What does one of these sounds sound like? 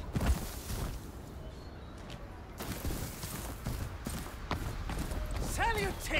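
Footsteps run quickly over stone paving.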